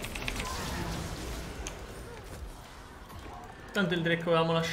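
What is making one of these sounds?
Video game battle effects clash and crackle.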